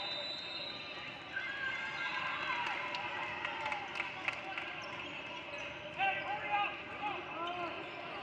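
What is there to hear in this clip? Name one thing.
A man calls out loudly to players.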